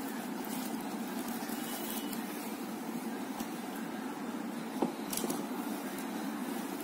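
Plastic cords rustle and rub softly as hands handle them.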